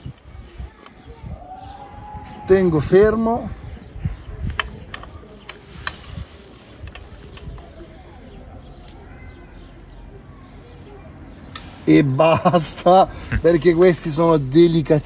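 A metal wrench clicks against a bolt.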